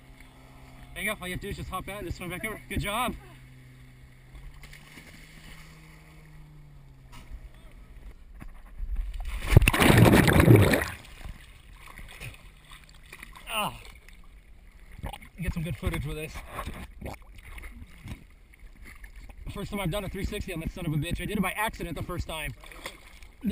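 A young woman talks near the water.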